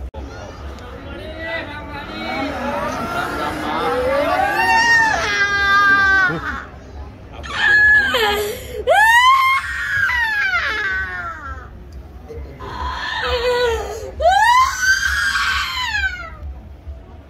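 A woman wails and cries loudly nearby.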